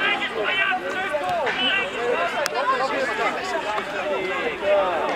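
A crowd of men cheers and shouts loudly outdoors.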